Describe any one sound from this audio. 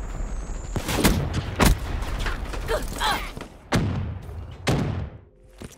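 Gunshots ring out in sharp bursts.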